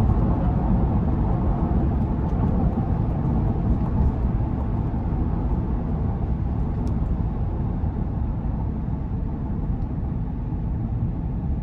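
Road noise and a low engine hum fill a car's cabin as it drives at speed on a highway.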